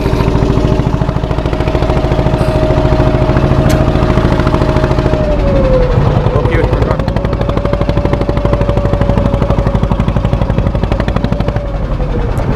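A boat engine drones steadily up close.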